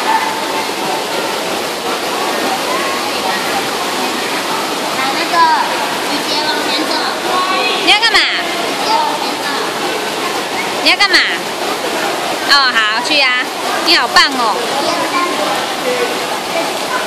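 Water splashes and sloshes in a pool.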